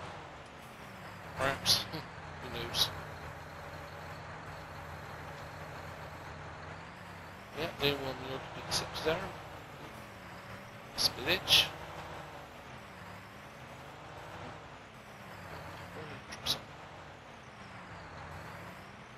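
A tractor engine hums steadily and changes pitch as it drives.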